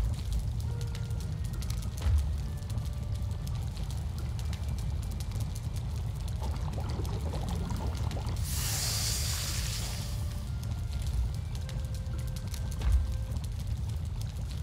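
A fire crackles in a hearth.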